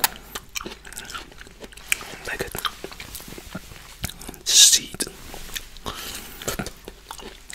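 A man speaks softly close to a microphone.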